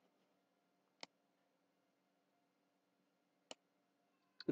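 A computer mouse clicks sharply, twice.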